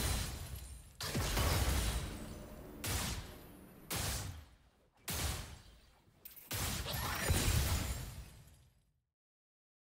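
Game combat effects clash with sharp hits and whooshes.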